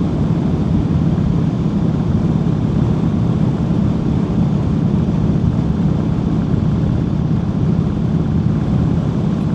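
A motorcycle engine rumbles steadily while riding along a road.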